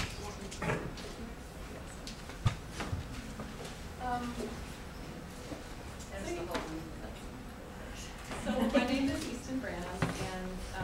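A young woman speaks casually in a room with a slight echo.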